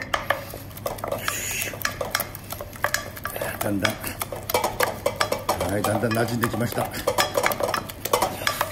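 A wooden spoon scrapes and taps against a metal pot.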